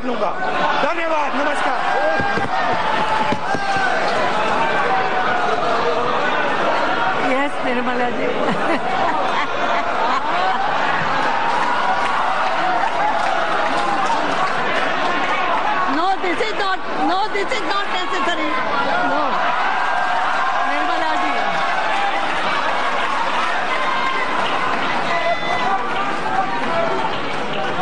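A crowd laughs and chatters loudly in a large hall.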